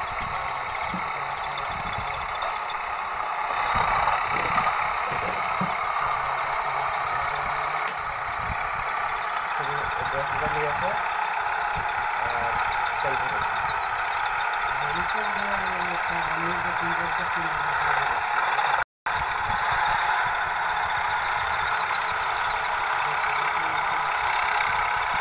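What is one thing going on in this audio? Tractor wheels churn and splash through wet mud.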